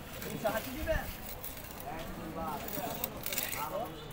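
A hand scrapes scales off a fish against a blade.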